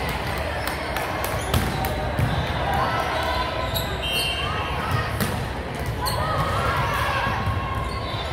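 Volleyballs thump off hands and arms in a large echoing gym.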